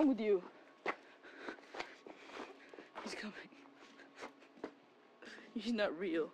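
A boy talks close to the microphone with animation.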